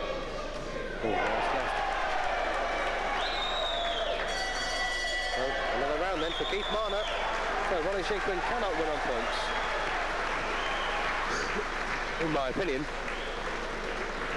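Several men in the crowd shout loudly.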